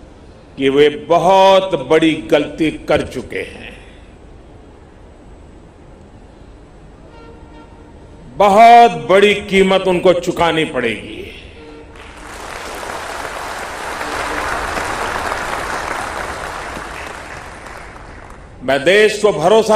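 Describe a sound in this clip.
An elderly man speaks forcefully into a microphone, heard over loudspeakers.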